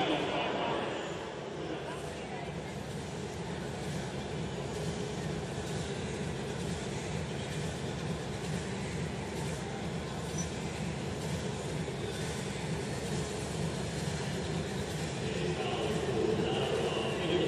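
A large crowd murmurs in a big echoing stadium.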